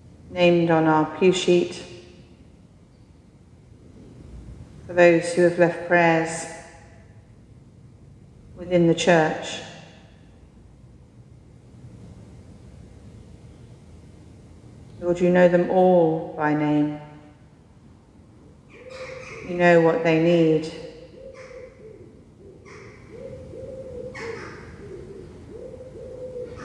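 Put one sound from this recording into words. A man chants slowly in short phrases, echoing in a large hall.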